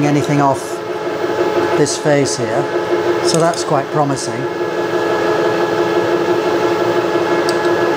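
A milling machine motor hums steadily.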